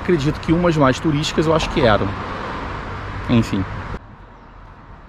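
A man speaks calmly and close by, outdoors in a light wind.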